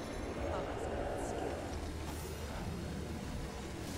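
A magic spell bursts with a bright whoosh.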